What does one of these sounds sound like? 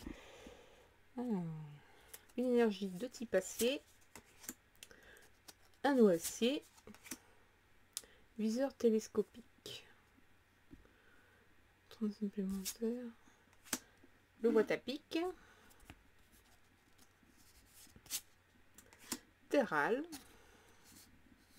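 Playing cards rustle and flick as they are shuffled by hand.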